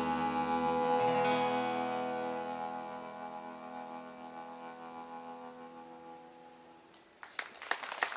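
A strummed guitar chord rings out and slowly fades.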